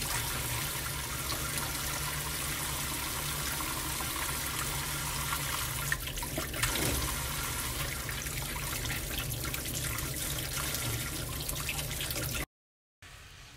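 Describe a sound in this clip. Water runs steadily from a tap into a metal sink.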